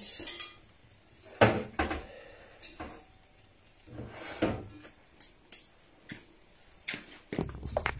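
A pot clatters against a counter.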